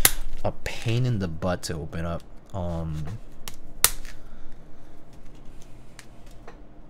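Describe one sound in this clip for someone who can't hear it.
Plastic keycaps click and clack as hands handle them.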